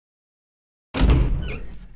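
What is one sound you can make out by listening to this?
A heavy door opens with a loud creak.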